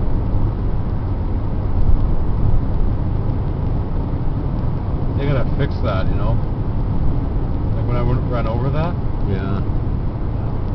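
A car rolls along with a steady low rumble of tyres and engine, heard from inside.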